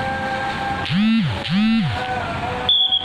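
A police siren whoops twice.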